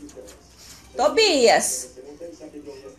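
A small dog lets out a loud, wavering howl.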